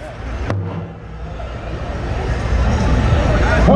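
A group of men beat a large drum together in a steady rhythm.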